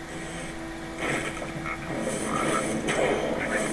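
A fiery spell explodes with a loud crackling roar.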